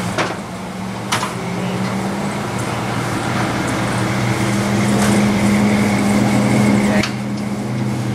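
A car engine idles nearby with a steady low hum.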